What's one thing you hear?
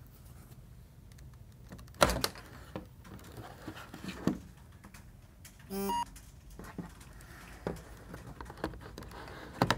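Hands tap and knock against a plastic device.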